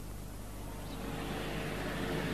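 A small van drives slowly closer.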